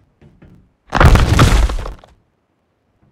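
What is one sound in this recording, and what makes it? An ice wall forms with a loud crackling whoosh in a video game.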